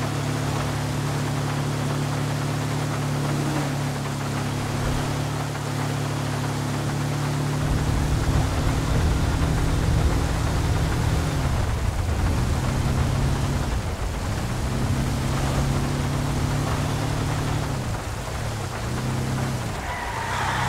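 Rain patters steadily all around.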